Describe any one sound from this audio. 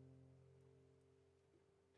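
A guitar chord rings out and fades.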